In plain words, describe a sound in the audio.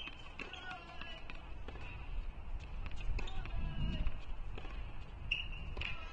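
A tennis ball bounces on a hard court several times.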